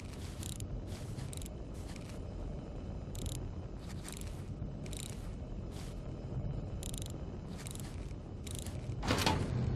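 Metal dials click as a hand turns them.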